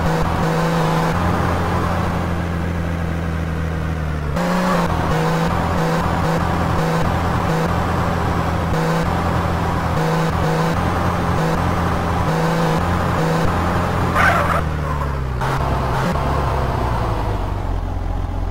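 A sports car engine roars as the car drives along.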